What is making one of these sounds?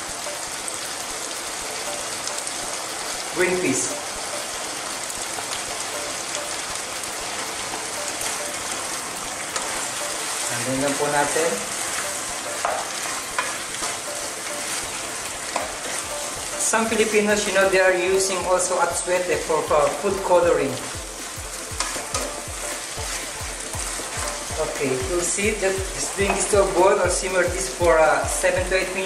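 Food sizzles and simmers in a pan.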